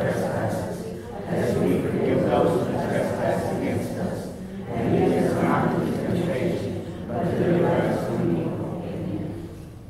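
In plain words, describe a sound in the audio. A middle-aged man speaks steadily into a microphone, heard through a loudspeaker in an echoing hall.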